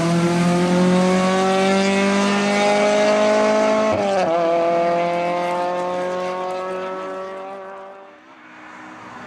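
A rally car engine revs hard and fades into the distance.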